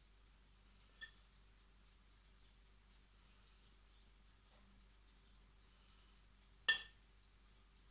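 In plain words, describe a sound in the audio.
A metal spoon scrapes and clinks against a plate.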